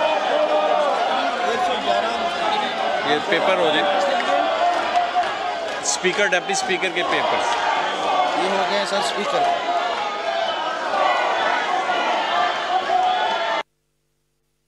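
A crowd of men shouts and chants loudly in a large echoing hall.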